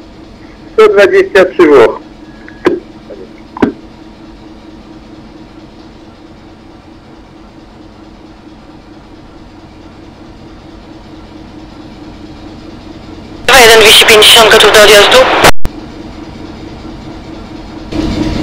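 A train hums steadily as it rolls along the tracks.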